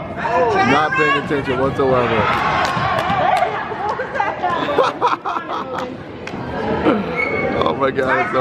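Children shout and call out excitedly in an echoing hall.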